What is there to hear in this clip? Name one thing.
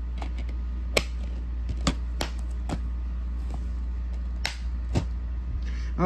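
A plastic disc case clicks and clacks as it is handled.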